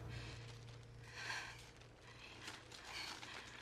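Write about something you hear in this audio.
A woman breathes shakily.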